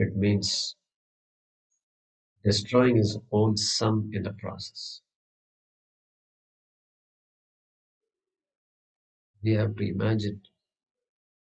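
A man chants calmly in a low voice through a microphone, in short phrases with pauses.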